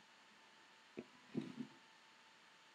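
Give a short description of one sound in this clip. A brush knocks lightly against a dish.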